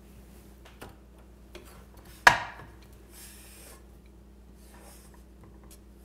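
A wooden spoon knocks against a metal pot.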